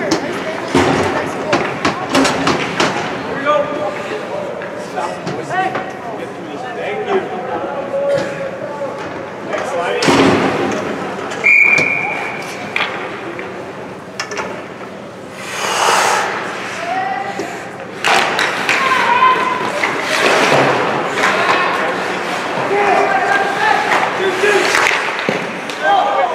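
Young players shout to each other across an echoing rink.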